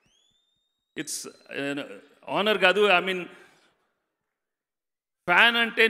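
A middle-aged man speaks with animation into a microphone over loudspeakers, with pauses.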